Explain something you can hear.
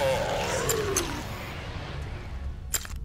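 A magical burst whooshes and fades away.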